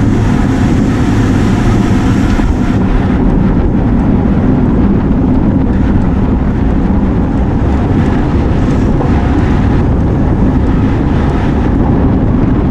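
Strong wind buffets a microphone outdoors.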